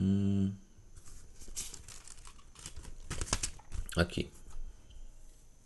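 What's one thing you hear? Paper rustles and crinkles close to a microphone.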